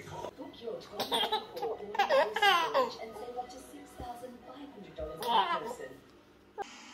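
A baby laughs loudly in bursts.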